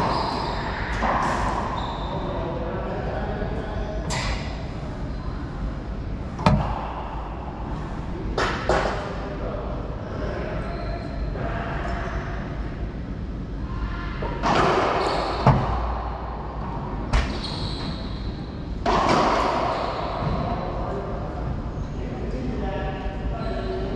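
A ball smacks off the walls and rackets, echoing in a hard, empty court.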